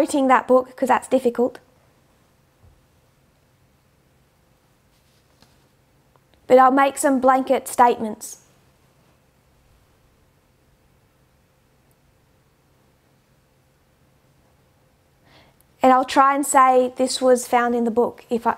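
A woman speaks calmly and clearly into a close microphone, with pauses between phrases.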